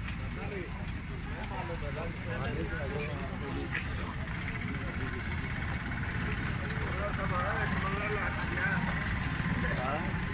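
A large fire roars and crackles steadily.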